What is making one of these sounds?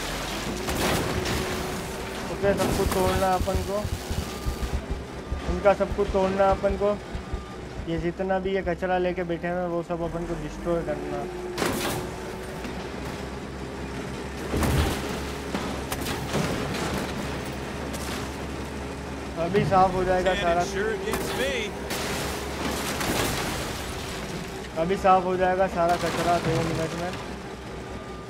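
A heavy loader's diesel engine rumbles steadily.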